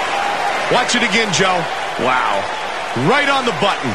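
A crowd cheers and roars loudly.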